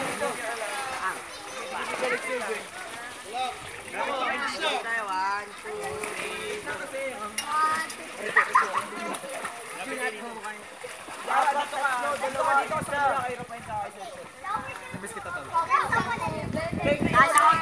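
A group of young people talk and laugh loudly nearby, outdoors.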